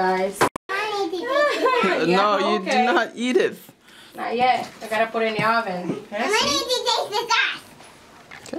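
A young child talks with excitement close by.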